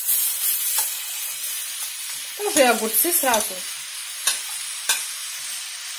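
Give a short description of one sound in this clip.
Chopped vegetables drop into a sizzling pan.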